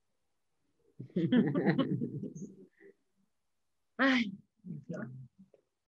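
A woman talks cheerfully over an online call.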